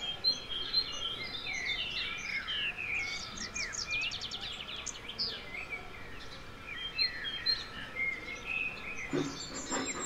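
A small bird chirps and twitters nearby.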